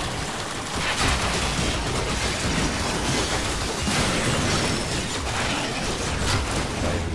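Energy weapons fire in crackling bursts.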